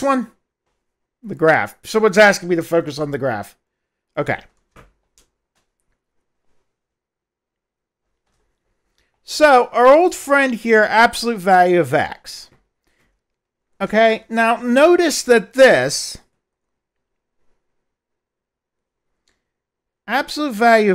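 A middle-aged man lectures calmly in pauses, close through a headset microphone.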